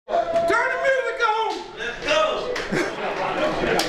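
A man shouts loudly with excitement.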